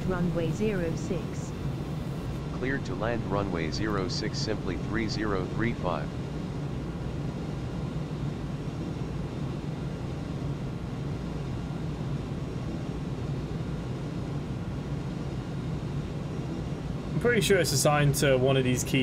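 A jet engine drones steadily.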